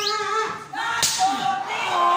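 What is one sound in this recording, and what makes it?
A sharp slap of a body blow cracks once.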